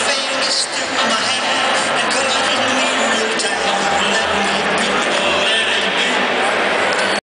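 A large crowd cheers and chatters loudly in a big echoing arena.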